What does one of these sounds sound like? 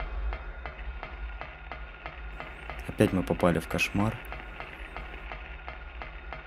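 Footsteps clank steadily on a metal grate.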